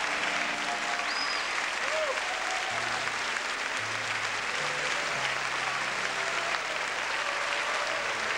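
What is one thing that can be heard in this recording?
A large crowd cheers and shouts in an echoing hall.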